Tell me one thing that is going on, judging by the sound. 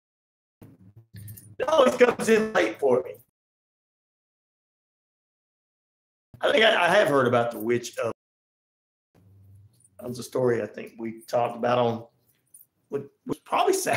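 A man speaks with animation, close into a microphone, with pauses between phrases.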